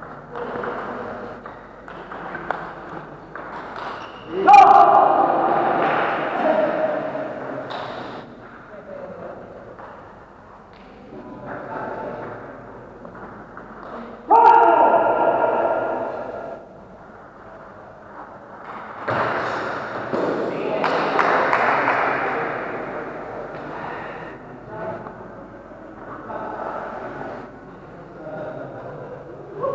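A table tennis ball clicks back and forth off paddles and a table in an echoing hall.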